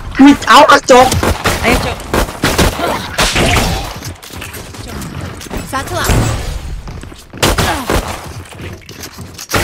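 A gun fires in quick bursts.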